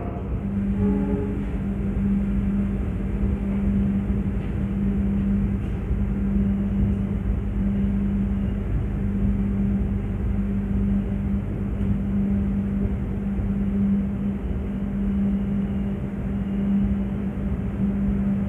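A train rumbles and hums steadily as it rolls slowly along.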